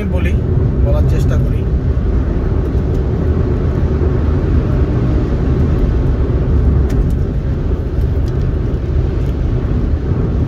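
Tyres roll and rumble over the road.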